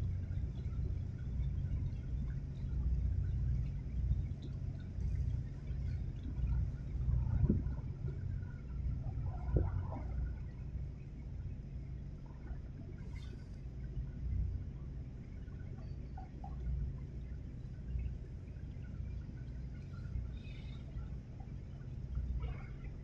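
A large ship's engine rumbles low and steady.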